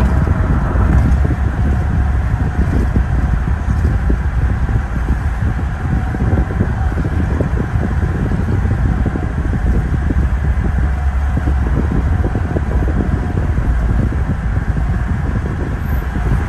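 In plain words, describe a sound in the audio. A car's engine hums and tyres roar steadily on the road, heard from inside the car.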